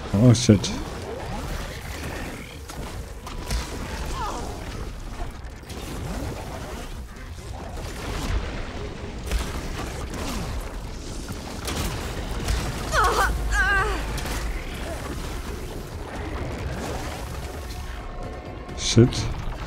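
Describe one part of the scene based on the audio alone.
A machine creature stomps and roars nearby.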